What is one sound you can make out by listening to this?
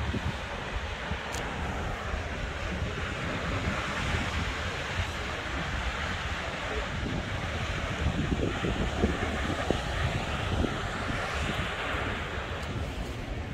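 Waves wash gently against rocks far below.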